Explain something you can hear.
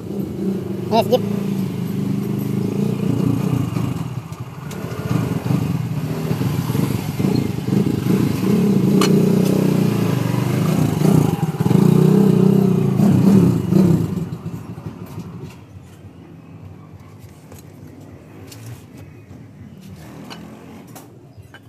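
A metal wrench clinks against engine parts.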